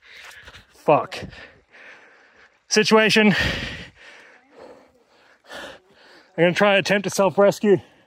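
Footsteps squelch in wet mud.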